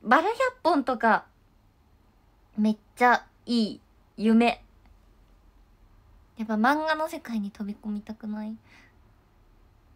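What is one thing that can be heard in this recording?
A young woman speaks close by in short, lively bursts, then falls quiet.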